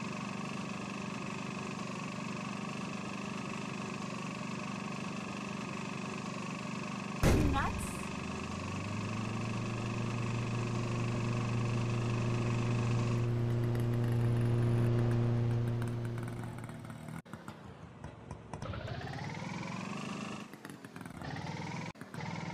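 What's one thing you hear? A small motor rickshaw engine putters and hums steadily.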